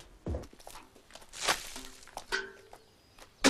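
Water splashes out of a bucket onto the ground.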